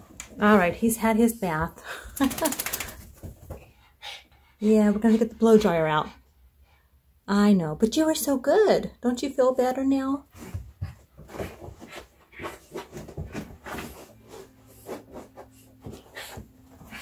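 A small dog rolls and rubs itself on a rug with a soft scuffing sound.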